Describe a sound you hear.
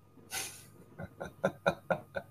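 A man laughs softly over an online call.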